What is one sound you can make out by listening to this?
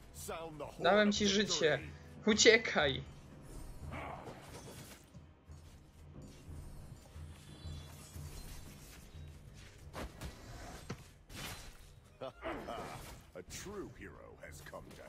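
Video game battle effects clash, zap and whoosh as characters fight.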